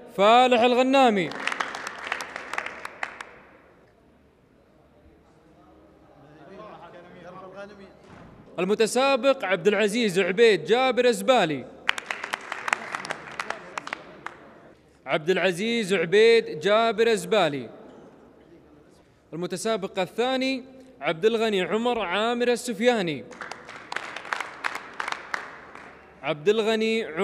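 A group of men sings together in chorus.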